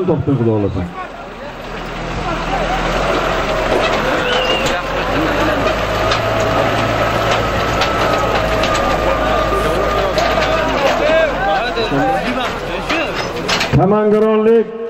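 A crowd of men shouts and chatters outdoors.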